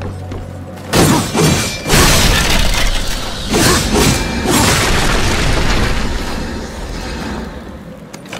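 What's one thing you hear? A burst of loud crackling blasts and clashing rings out.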